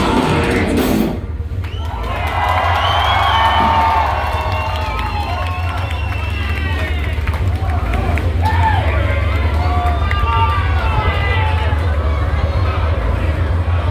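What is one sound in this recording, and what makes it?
A band plays loud music with heavy bass through big speakers in a large echoing hall.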